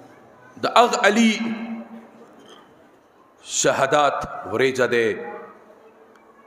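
A man speaks loudly and with emotion through a microphone, his voice echoing over loudspeakers.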